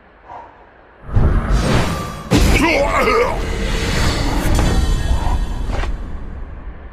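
A heavy magical blast roars and crackles.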